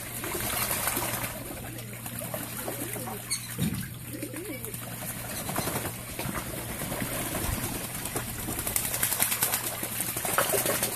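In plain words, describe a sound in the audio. Ducks splash while bathing in a shallow pond.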